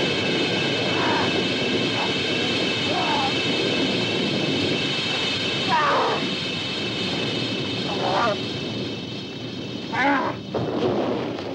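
A young woman screams in panic nearby.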